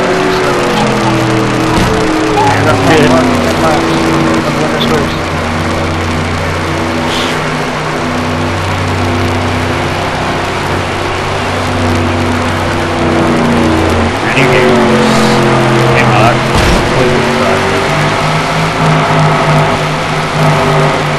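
Race car engines roar loudly at high speed, shifting pitch now and then.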